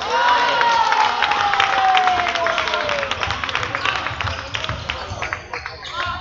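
A basketball bounces on the court floor.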